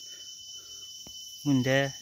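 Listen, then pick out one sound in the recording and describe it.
A hand splashes softly in shallow water.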